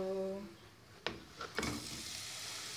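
Chopped onion drops into a pan of hot oil.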